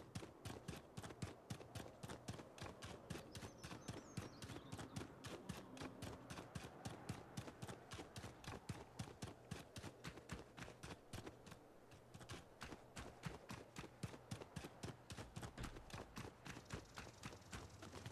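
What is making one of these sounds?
Quick footsteps run along a dirt path.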